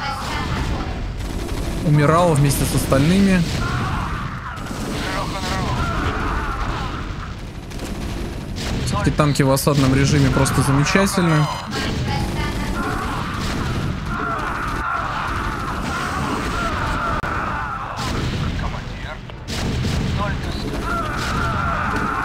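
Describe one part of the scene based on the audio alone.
Explosions boom in a video game battle.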